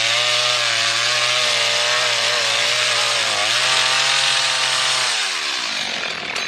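A chainsaw engine roars loudly up close, then winds down and stops.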